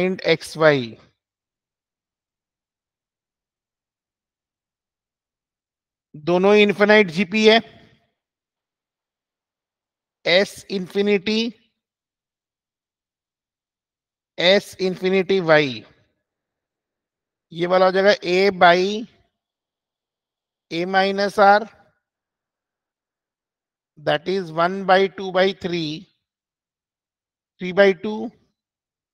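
A man speaks calmly in short phrases through a microphone, as if explaining.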